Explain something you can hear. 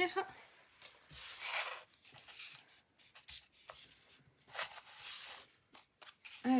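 Paper rustles and scrapes softly as it is handled and pressed down.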